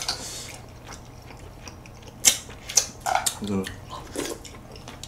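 Young men chew food wetly close to a microphone.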